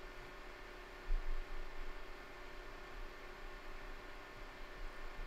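A computer fan hums steadily.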